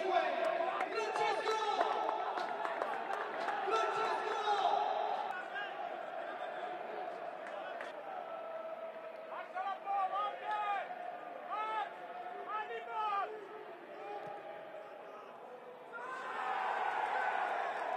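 Young men shout to each other in a large, echoing, empty stadium.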